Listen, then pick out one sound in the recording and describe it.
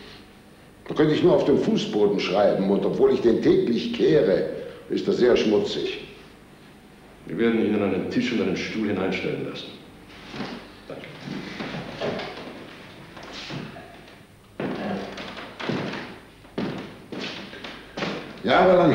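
An elderly man speaks calmly and earnestly nearby.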